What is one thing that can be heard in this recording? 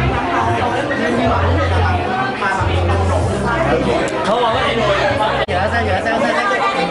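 A group of young men and women chatter and laugh nearby.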